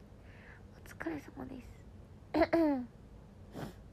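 A young woman speaks briefly in a soft voice, close by.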